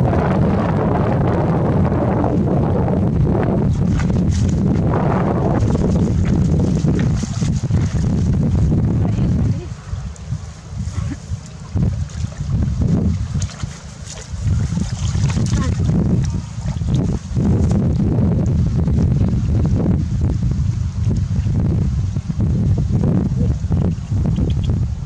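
Water splashes and sloshes as a net is dragged through it.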